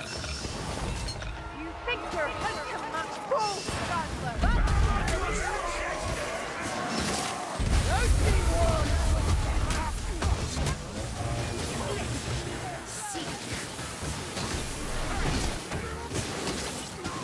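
Monsters growl and screech.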